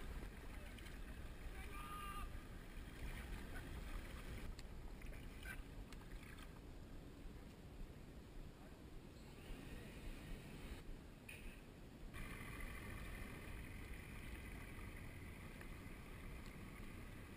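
A kayak paddle dips and splashes in calm water.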